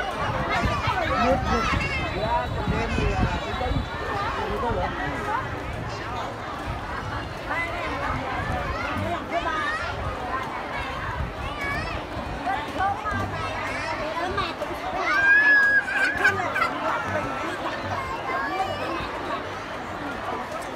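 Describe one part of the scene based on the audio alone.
A large crowd of children chatters and calls out outdoors.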